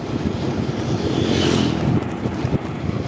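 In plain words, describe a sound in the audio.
A motorbike passes close by.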